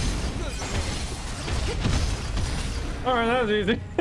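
Blades clash and slash rapidly in a fierce fight.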